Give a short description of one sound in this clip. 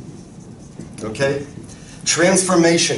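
A man speaks calmly in a room.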